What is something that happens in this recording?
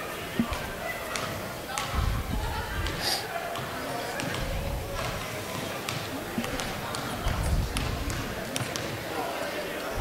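Children chatter and shout, echoing through the hall.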